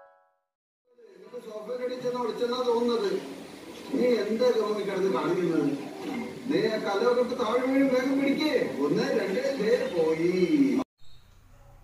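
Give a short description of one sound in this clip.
A television plays voices.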